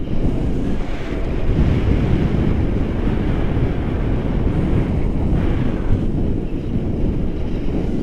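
Strong wind roars and buffets against a microphone outdoors.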